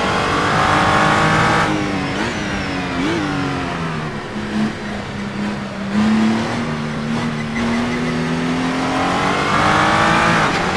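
A racing car engine roars at high revs, dropping in pitch as the car slows and rising again as it speeds up.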